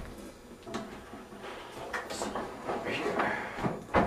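A metal drum stand clicks and clanks as it is adjusted by hand.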